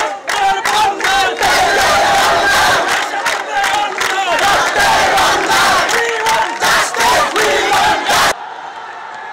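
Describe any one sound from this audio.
A crowd of young men and boys chants slogans loudly outdoors.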